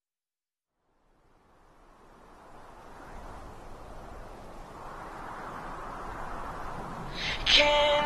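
Ocean waves crash and wash over each other, slowly growing louder.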